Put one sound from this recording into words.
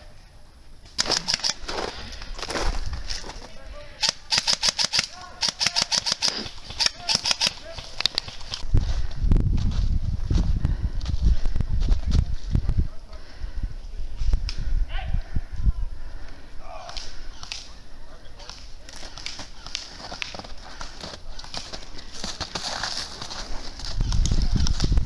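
A rifle fires rapid bursts of sharp shots close by.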